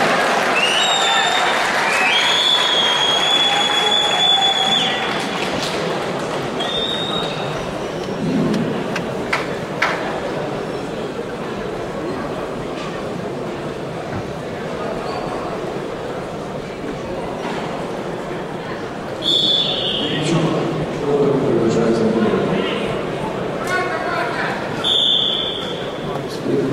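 A referee blows a shrill whistle in short and long blasts.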